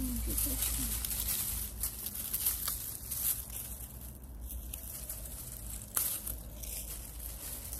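Garden shears snip through dry stems.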